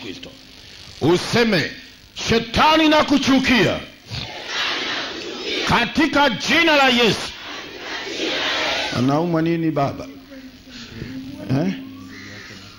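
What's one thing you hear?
A man speaks with animation through a loudspeaker outdoors.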